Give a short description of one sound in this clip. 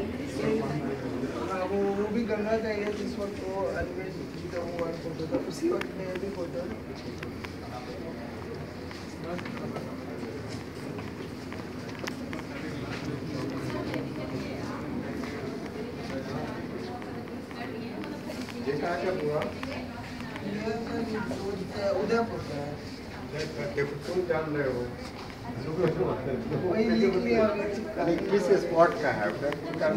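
A crowd of men and women chatter nearby in an echoing hall.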